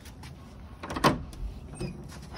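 A metal gate latch clicks open.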